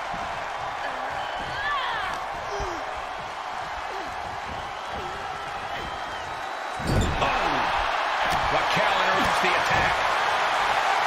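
A large crowd cheers and roars, swelling louder partway through.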